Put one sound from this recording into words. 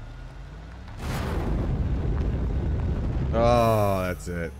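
A vehicle's rocket booster roars.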